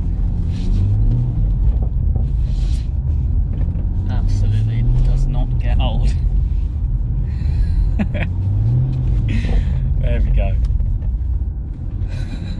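A car engine revs up and down repeatedly.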